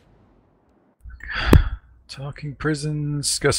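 A man talks through a microphone.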